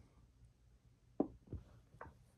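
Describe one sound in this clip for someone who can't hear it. A chess piece is set down on a board with a light knock.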